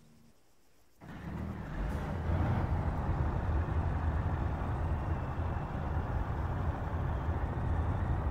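A tank engine rumbles loudly as the tank drives across a field.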